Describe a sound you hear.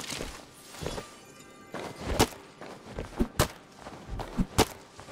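An axe chops into wood with sharp, repeated thuds.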